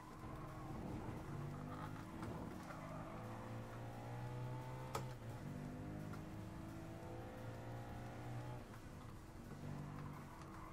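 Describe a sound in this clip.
A racing car engine revs hard, rising in pitch and dropping as it shifts gears.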